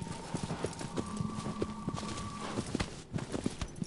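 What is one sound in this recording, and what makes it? A sword hums with a steady ringing tone.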